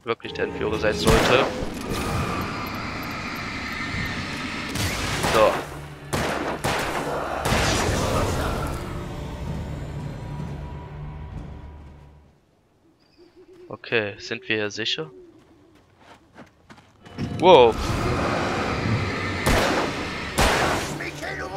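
Gunshots bang out sharply.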